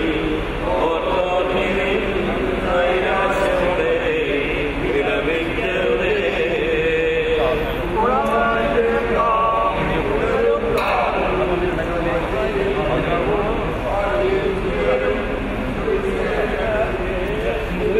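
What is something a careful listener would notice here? A group of mourners sing a slow, mournful hymn together.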